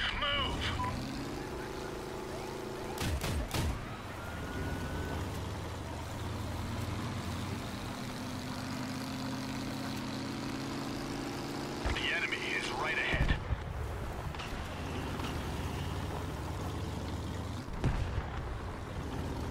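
Tyres crunch over sand and gravel.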